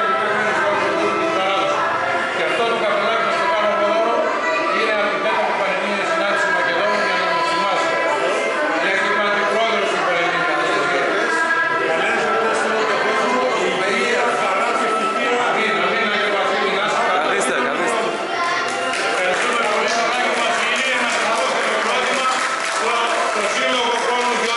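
A crowd chatters in an echoing hall.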